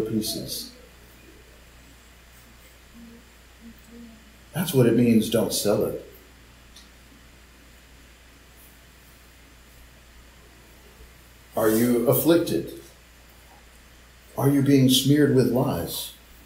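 A man reads out calmly through an online call, in short bursts with pauses.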